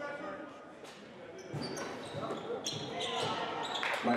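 Basketball shoes squeak on a wooden floor.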